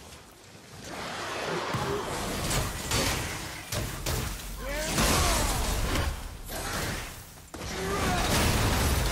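An axe strikes and slashes loudly.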